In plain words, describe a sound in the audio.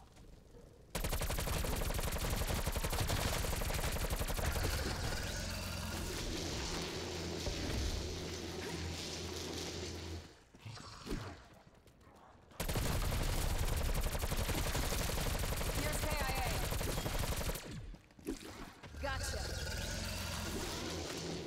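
Rapid gunfire rattles in loud, long bursts.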